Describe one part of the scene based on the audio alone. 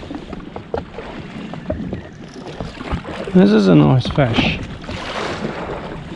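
Water laps and splashes against a small boat's hull.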